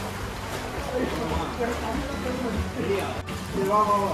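Swimmers splash in a pool.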